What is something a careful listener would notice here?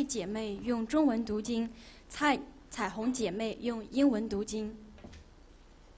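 A woman speaks clearly through a microphone in a large room.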